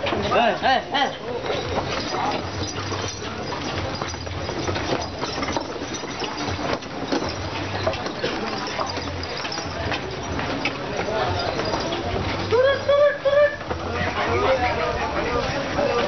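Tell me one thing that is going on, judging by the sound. A busy crowd of men and women chatters all around outdoors.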